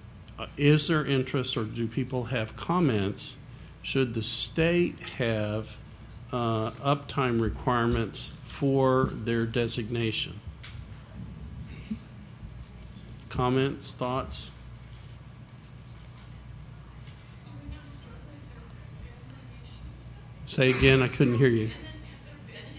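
An older man speaks calmly into a microphone, with pauses.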